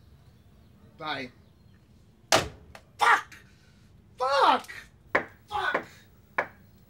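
A man talks on a phone with animation, close by.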